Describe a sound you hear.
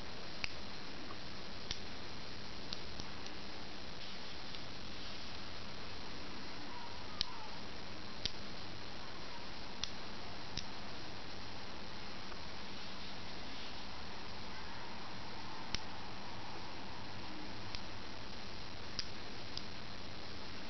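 Small steel magnetic balls click together in the hands.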